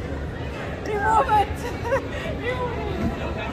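Two young women laugh loudly close by.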